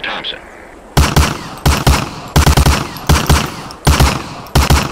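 A shotgun fires several loud shots in quick succession.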